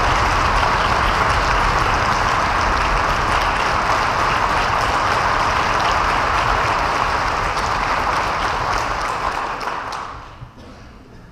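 An audience applauds loudly in a large hall, then the clapping dies away.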